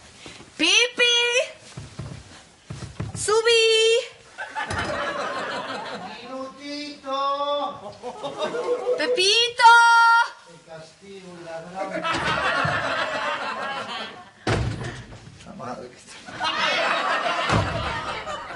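Bedsheets rustle as a young woman thrashes on a bed.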